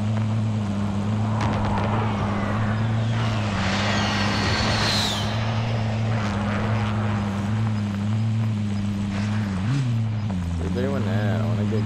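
A vehicle engine drones steadily as it drives over rough ground.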